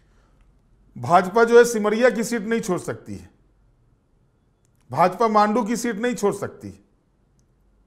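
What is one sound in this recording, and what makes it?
A man speaks clearly and steadily into a close microphone, in short bursts with pauses.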